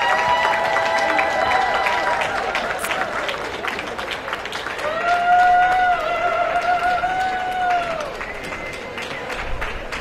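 Music plays over loudspeakers in a large open hall.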